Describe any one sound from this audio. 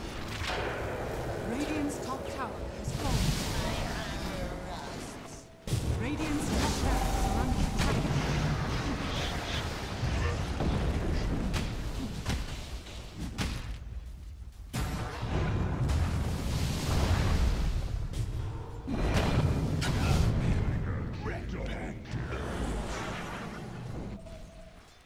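Magic blasts crackle and boom in a fast fantasy battle.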